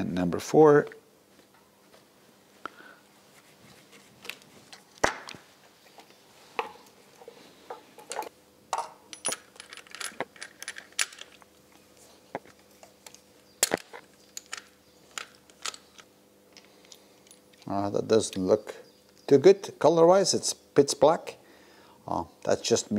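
Metal tools and parts click and clink against an engine.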